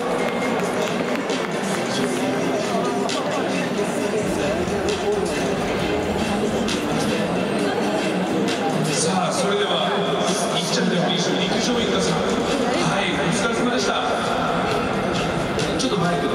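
A crowd murmurs and chatters nearby.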